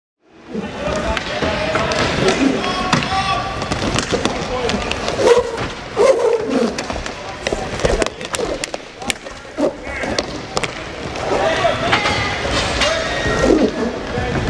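Skate wheels roll and scrape across a hard floor.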